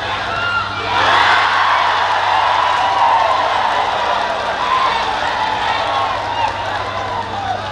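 A crowd cheers loudly in an open stadium.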